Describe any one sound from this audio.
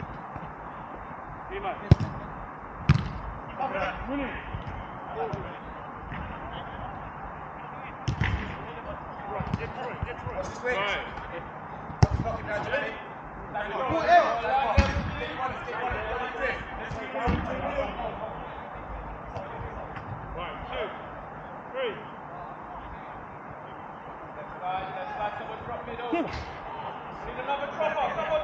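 Men shout and call out to each other across an outdoor pitch.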